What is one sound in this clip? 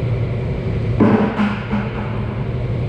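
A plastic bucket knocks against a metal surface.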